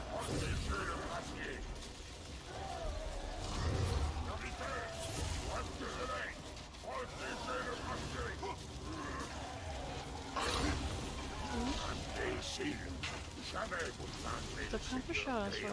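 Combat sound effects crash and burst repeatedly.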